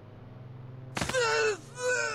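A body thuds heavily onto the ground.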